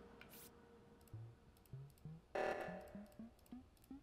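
Short electronic beeps sound as keypad buttons are pressed.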